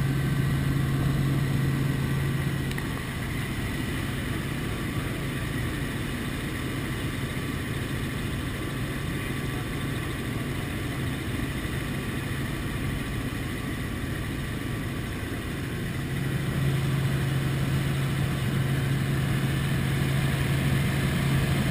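A helicopter's rotor and engine roar steadily.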